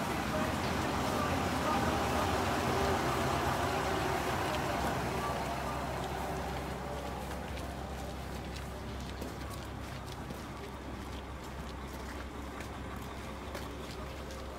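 Footsteps scuff along a platform.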